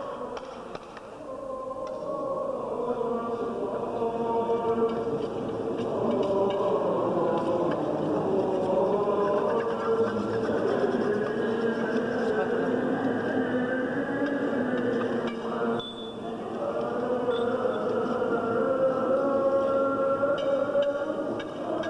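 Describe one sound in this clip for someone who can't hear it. Men chant together in a slow, sustained drone.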